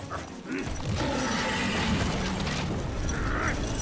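A huge beast roars loudly.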